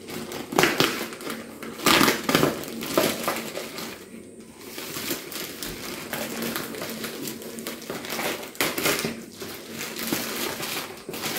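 Scissors snip through thick plastic.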